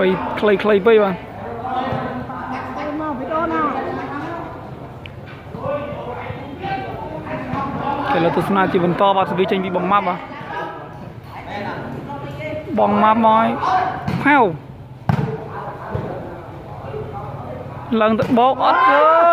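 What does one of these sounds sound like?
A ball is kicked with dull thuds.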